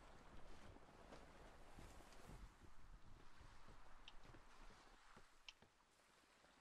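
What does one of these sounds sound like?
Waves splash against a sailing ship's hull.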